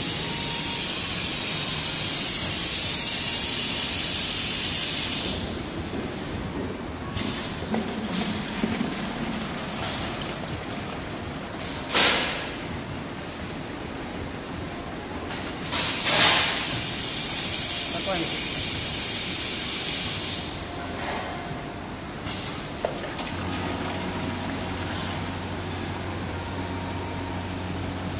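A filling machine hums and whirs steadily.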